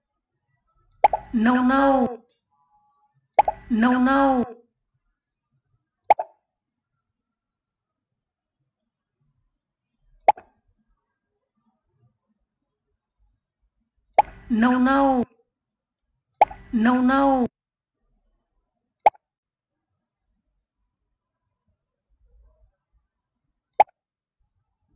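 Short electronic tones and clicks sound from a computer game.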